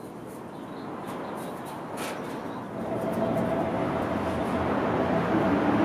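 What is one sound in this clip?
A train rumbles along the tracks as it approaches, growing steadily louder.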